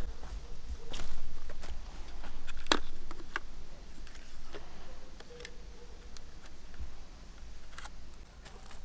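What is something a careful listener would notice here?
A plastic case clicks and snaps shut.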